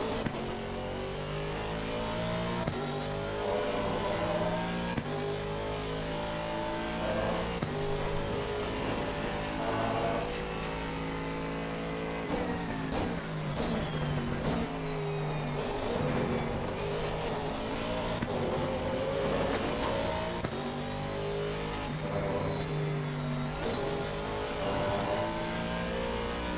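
A racing car engine revs up and down through the gears.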